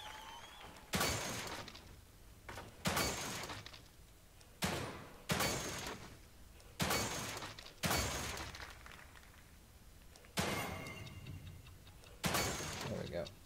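Gunshots fire loudly one after another, each followed by a short echo.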